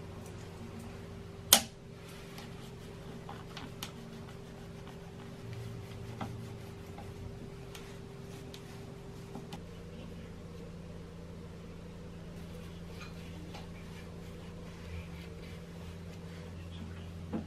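Metal parts of a sewing machine click and knock softly under fingers.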